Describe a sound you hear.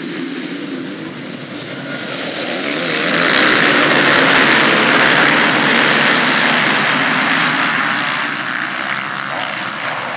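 Many motorcycle engines roar and whine at high revs, swelling louder and then easing off.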